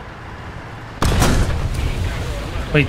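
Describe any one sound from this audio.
A tank pushes through rustling bushes.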